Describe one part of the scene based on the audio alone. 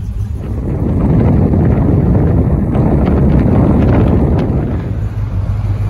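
Wind rushes loudly past an open car window.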